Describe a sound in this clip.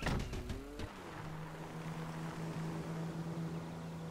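A car engine starts and runs steadily.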